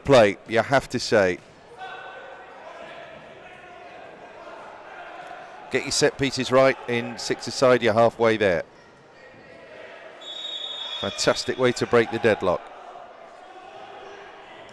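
A crowd murmurs steadily in a large echoing arena.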